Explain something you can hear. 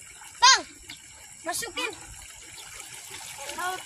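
Shallow water splashes around a boy's legs.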